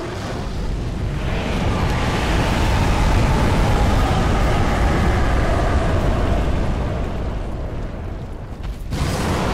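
Flames roar and rumble loudly.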